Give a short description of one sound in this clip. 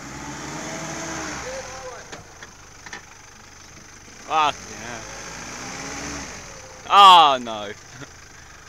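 A four-wheel-drive SUV's engine labours as the SUV crawls up a dirt slope.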